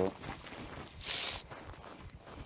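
Leafy branches rustle and swish as someone pushes through a bush.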